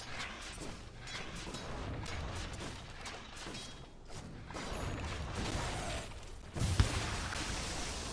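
Game weapons clash and strike in a fight.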